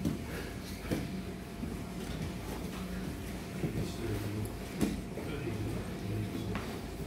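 Bodies and bare feet thump and shuffle on a padded mat.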